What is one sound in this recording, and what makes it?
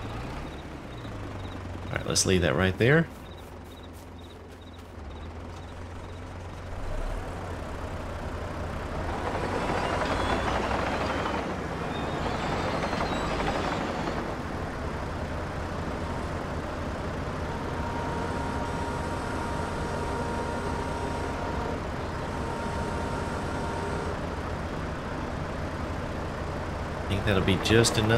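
A diesel engine hums steadily.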